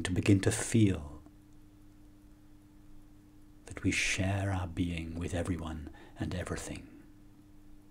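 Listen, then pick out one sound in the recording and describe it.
A middle-aged man speaks calmly and softly into a microphone close by.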